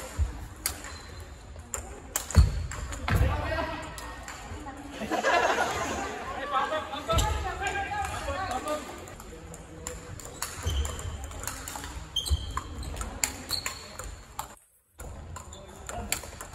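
A table tennis ball clicks sharply back and forth on paddles and the table in a large echoing hall.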